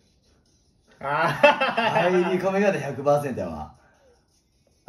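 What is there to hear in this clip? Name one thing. Young men laugh.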